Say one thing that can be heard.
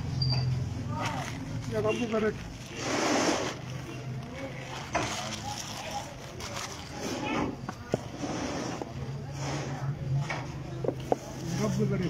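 Hands pat and rub a powdery surface.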